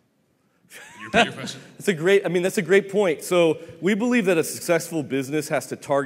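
Another man in the audience speaks through a handheld microphone.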